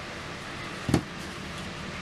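A hammer knocks once against a table top.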